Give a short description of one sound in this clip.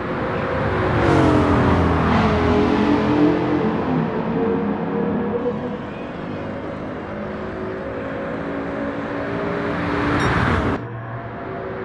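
A race car rushes past close by with a falling whoosh.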